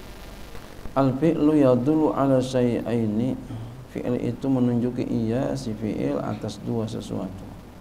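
A man chants melodically into a microphone, heard through a loudspeaker in an echoing hall.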